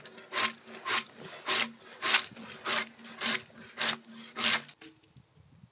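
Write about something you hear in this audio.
A drawknife scrapes bark off a log in quick, rhythmic strokes.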